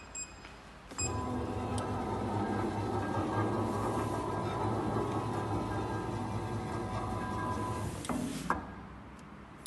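A machine's electric motor hums steadily.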